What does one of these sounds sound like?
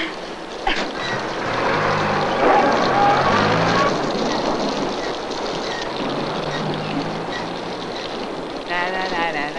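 A car engine rumbles as a vehicle drives away.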